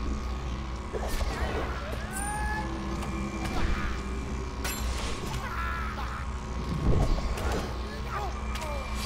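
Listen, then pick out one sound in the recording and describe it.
Spell effects whoosh and crackle during a fight.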